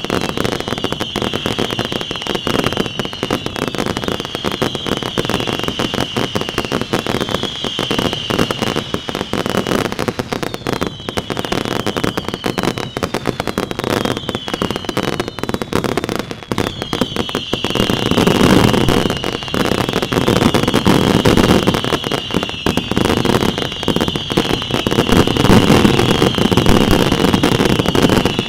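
Firework rockets whistle as they shoot up.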